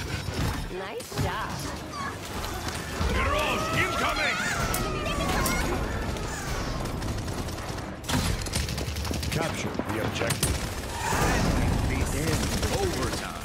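Gunfire and energy blasts crackle in rapid bursts.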